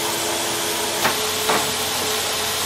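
A wooden board knocks down onto a metal table.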